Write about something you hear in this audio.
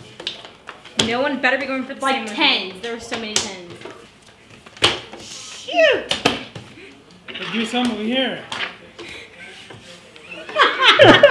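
Women talk and laugh loudly nearby.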